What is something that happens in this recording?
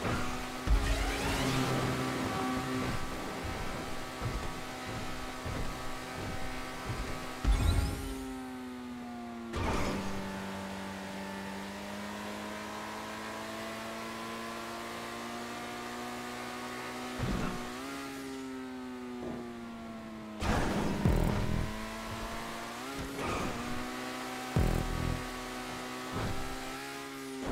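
A car engine hums steadily at high speed, its pitch shifting as it accelerates.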